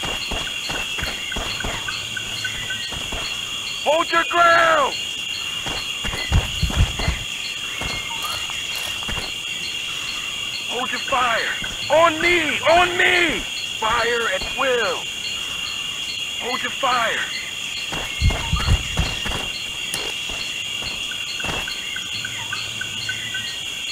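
Boots tread on a dirt track.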